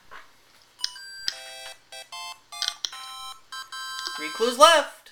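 A video game plays a short electronic jingle of tones.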